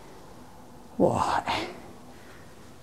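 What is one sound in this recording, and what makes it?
A curtain rustles as it is drawn aside.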